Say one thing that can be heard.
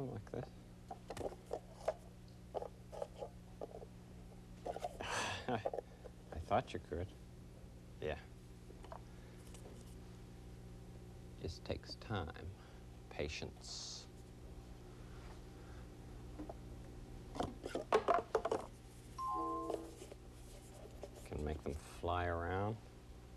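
Paper cups tap and clatter as they are stacked on a table.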